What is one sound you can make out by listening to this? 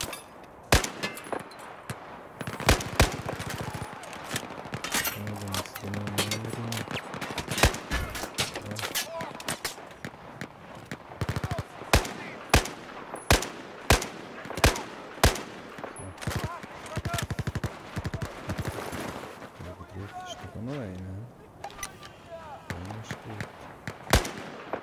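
Gunfire cracks loudly in rapid bursts and single shots.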